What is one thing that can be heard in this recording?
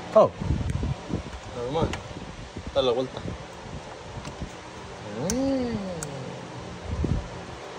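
A plastic electrical connector clicks into place.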